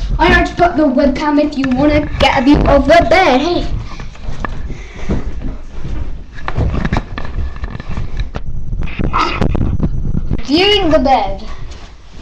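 A young girl talks in a lively, high voice close to the microphone.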